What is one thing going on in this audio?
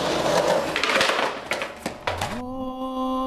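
A skateboard clacks and slaps down hard on concrete.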